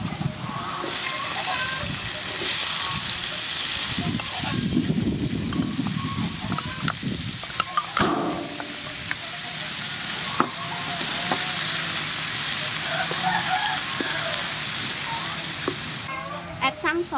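Food sizzles and spatters in a hot pan.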